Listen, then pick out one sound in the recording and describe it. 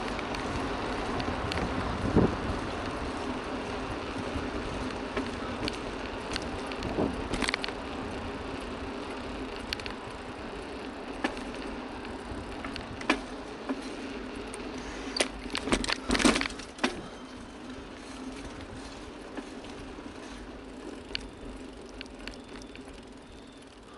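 Wind rushes past a moving rider, loud and steady.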